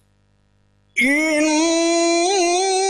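An older man chants in a loud, long-held melodic voice through a microphone.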